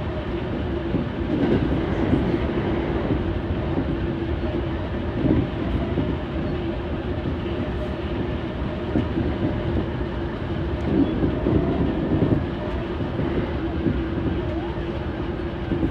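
A train's wheels clatter over rail joints.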